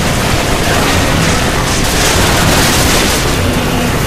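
A mounted gun fires in rapid bursts.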